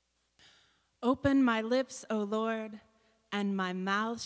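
A woman sings into a microphone in a large room.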